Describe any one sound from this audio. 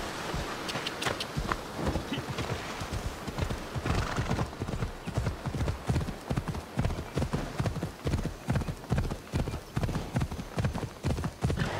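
A horse's hooves pound rhythmically as it gallops.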